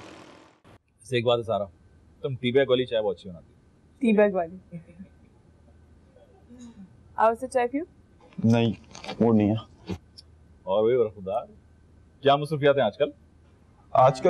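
Men talk calmly nearby.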